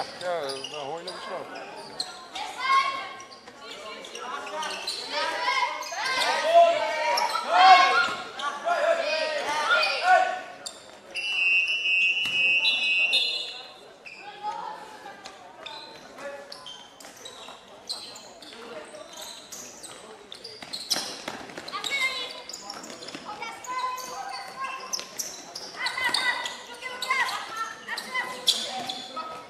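Young women shout and call out to each other in a large echoing hall.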